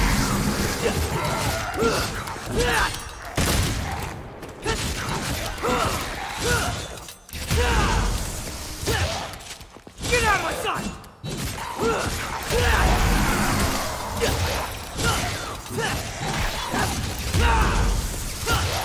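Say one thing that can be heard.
Swords clash and slash in quick bursts.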